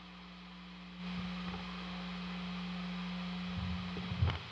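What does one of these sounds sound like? A man lightly plucks and scrapes electric guitar strings.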